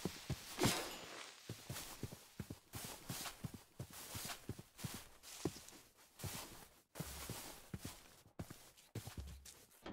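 Blocks break with short crunching thuds.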